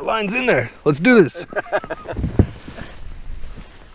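Boots crunch on snow with slow steps.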